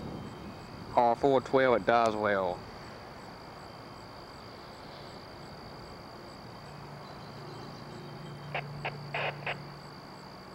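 A train whistle blows several loud blasts from a distance.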